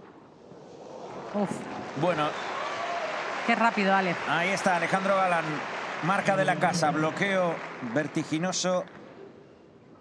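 A crowd in a large arena cheers and applauds.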